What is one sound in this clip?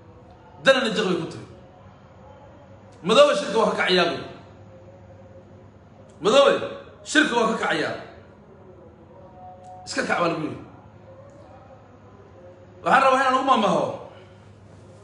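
A young man speaks calmly in short phrases with pauses, close to a microphone.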